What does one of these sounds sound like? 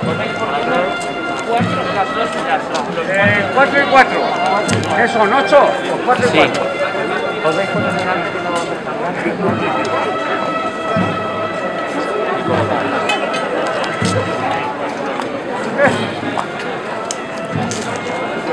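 A crowd of adults murmurs and chats nearby outdoors.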